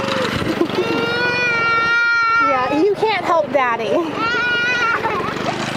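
A toddler cries close by.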